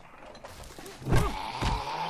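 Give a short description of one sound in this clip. A zombie growls close by.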